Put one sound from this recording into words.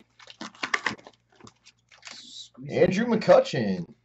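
A cardboard box lid is pulled open.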